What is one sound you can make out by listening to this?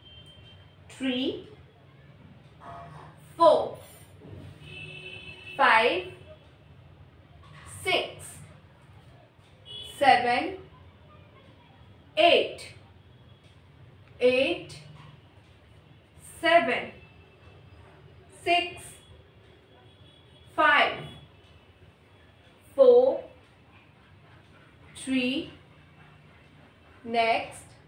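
A woman calls out short words one at a time, close by, in a small room that rings faintly.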